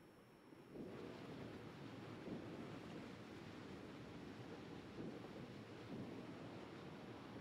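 Water rushes and splashes along a moving ship's hull.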